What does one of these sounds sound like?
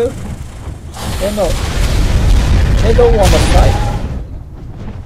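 A burst of fire roars.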